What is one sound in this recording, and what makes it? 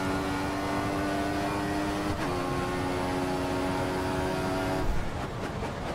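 A racing car engine screams at high revs, shifting up through the gears.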